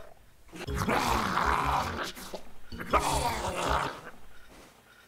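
A woman screams in terror.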